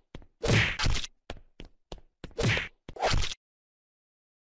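A spinning blade crushes a figure with a wet splat.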